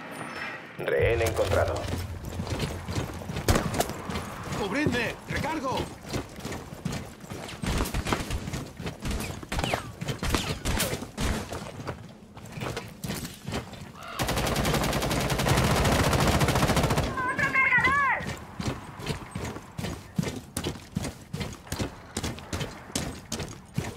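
Footsteps thud quickly as someone runs.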